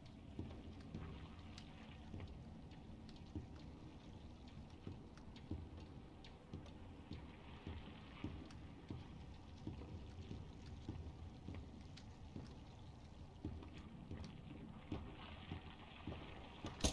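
Footsteps thud steadily across wooden floorboards.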